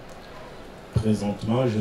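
A man speaks calmly through a microphone and loudspeaker.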